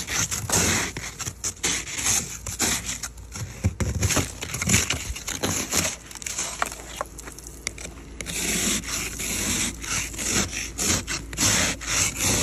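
A snow brush scrapes and swishes snow off a car window.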